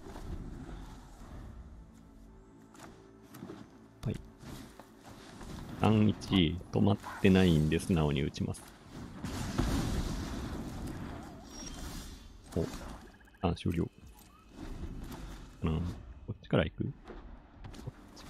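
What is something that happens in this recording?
Card game sound effects whoosh and chime as cards are played.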